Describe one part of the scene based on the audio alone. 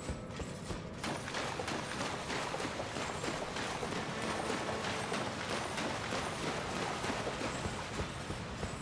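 Water splashes under running feet.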